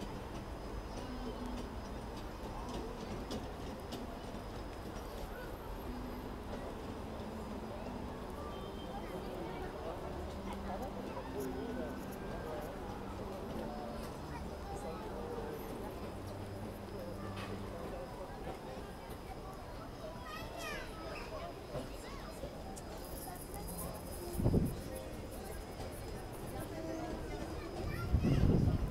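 Fairground music plays from a carousel.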